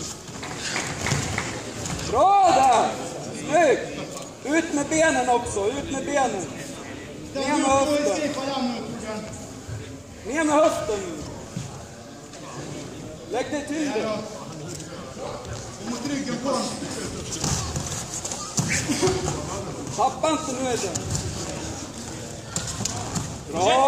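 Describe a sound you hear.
Men shout loudly in a large echoing hall.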